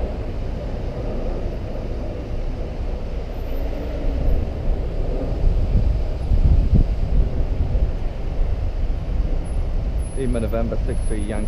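A car pulls away.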